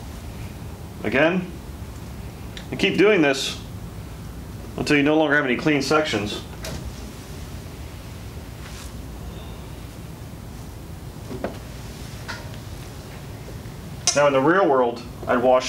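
A man speaks calmly and closely, in short bursts.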